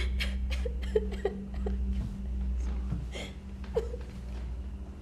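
A young woman speaks softly and reassuringly close by.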